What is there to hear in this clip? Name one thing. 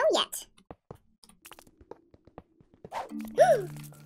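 A pickaxe chips at stone with quick, light knocks.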